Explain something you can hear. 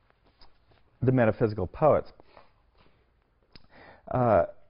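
A man reads aloud with emphasis, heard through a microphone.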